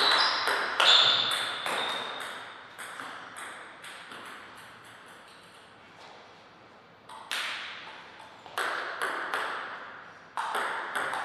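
A table tennis ball clicks sharply off paddles and the table in an echoing hall.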